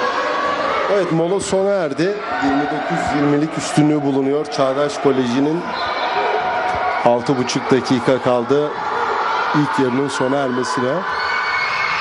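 A crowd chants loudly in rhythm.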